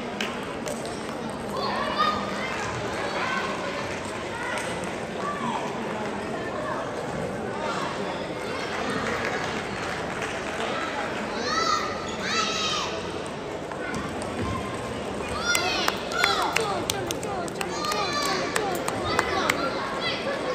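Shoes squeak sharply on the hall floor.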